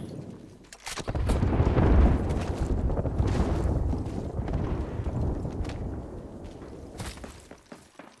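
Footsteps thud quickly on dirt and grass.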